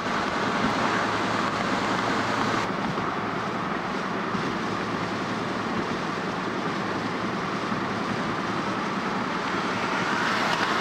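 Tyres roll steadily along a road.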